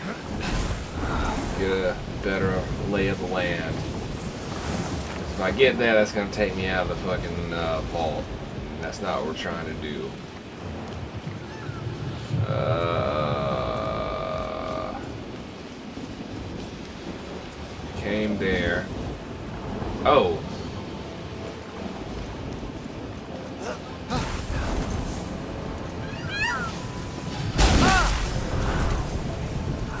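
Wings whoosh in a rush of air during a glide.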